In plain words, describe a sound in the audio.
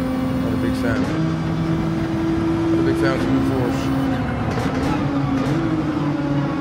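A racing car engine hums steadily and shifts up through the gears.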